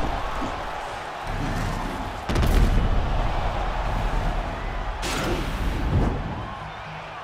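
A crowd roars in a large arena.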